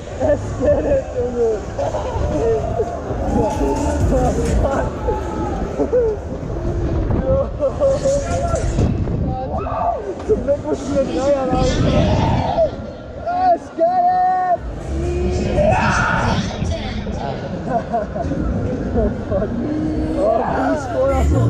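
Wind rushes and buffets past as a fairground ride spins fast outdoors.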